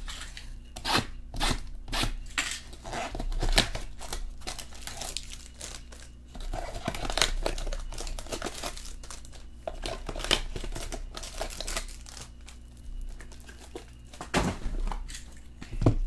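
Cardboard boxes knock and scrape as hands handle them.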